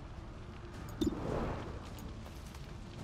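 A gunshot cracks and echoes.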